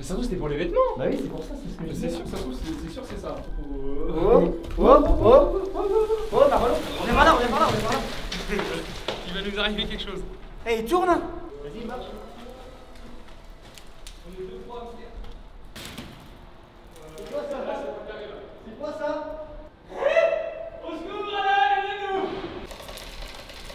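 Young men talk and shout with animation.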